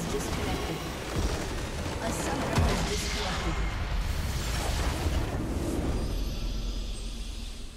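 A huge crystal shatters with a deep, booming blast.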